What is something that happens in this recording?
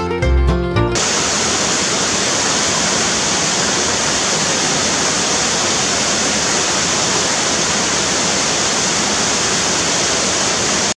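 A waterfall rushes and splashes steadily into a pool.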